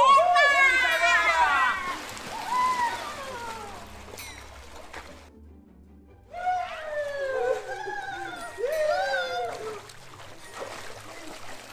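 Water splashes as people move around in a pool.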